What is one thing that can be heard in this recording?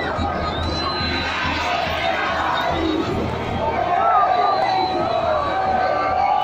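A large crowd of fans sings and chants loudly in an open stadium.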